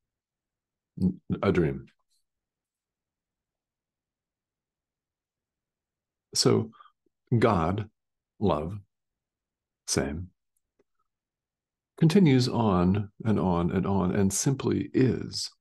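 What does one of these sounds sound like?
A middle-aged man speaks calmly in short phrases over an online call.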